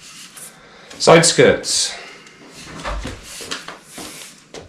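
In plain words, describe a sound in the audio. A hard panel knocks and bumps as it is moved around.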